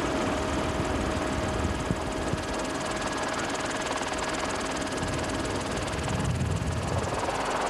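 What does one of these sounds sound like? An aircraft engine drones steadily and loudly up close.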